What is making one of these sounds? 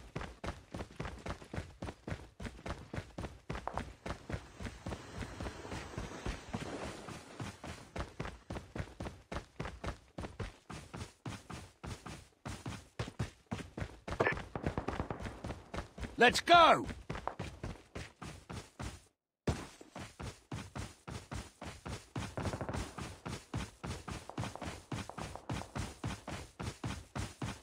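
Quick footsteps run over hard ground and dry grass.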